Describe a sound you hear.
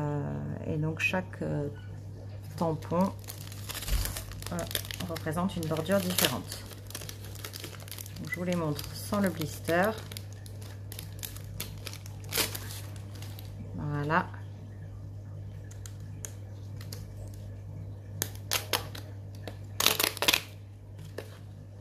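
A plastic packet crinkles and rustles in someone's hands.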